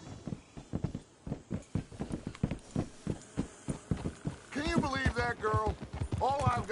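Horses' hooves clop at a steady walk.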